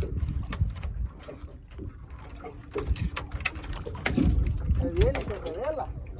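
A fishing line rasps and clicks as it is pulled in by hand.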